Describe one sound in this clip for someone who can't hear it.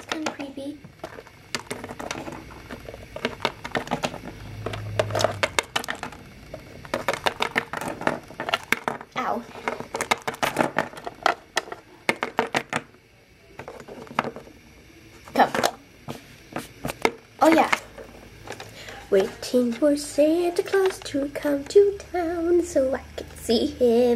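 Small plastic toy figures tap and click on a hard surface.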